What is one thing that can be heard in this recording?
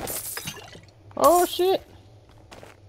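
Gold coins clink as they spill out.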